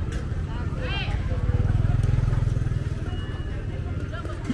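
A motorbike engine hums as it rides past close by.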